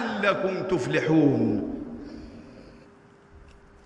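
An elderly man chants loudly through a microphone, echoing in a large hall.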